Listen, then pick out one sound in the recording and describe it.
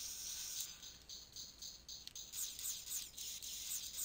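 A blaster fires energy shots.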